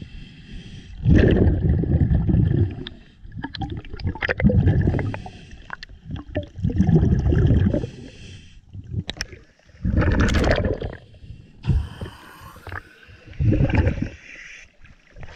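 Scuba bubbles gurgle loudly in bursts as a diver breathes out underwater.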